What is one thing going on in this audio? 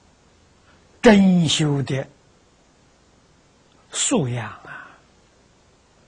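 An elderly man speaks calmly and slowly into a close microphone, in short phrases with pauses.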